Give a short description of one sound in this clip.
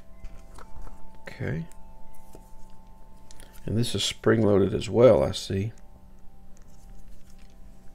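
A small screwdriver scrapes against a screw.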